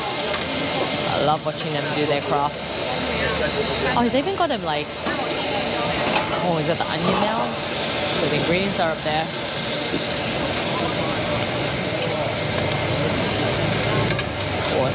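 Food sizzles steadily on a hot griddle.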